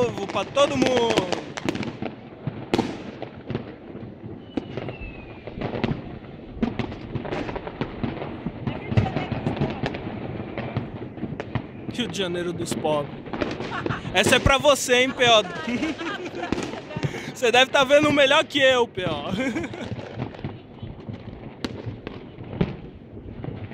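Fireworks pop and bang in the distance.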